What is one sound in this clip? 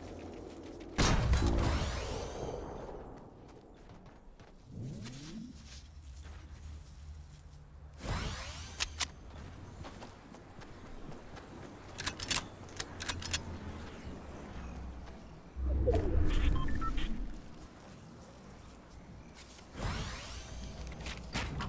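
A shotgun fires loud blasts that ring out briefly.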